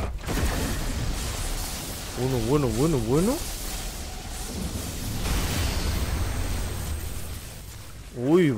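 Electricity crackles and lightning cracks loudly.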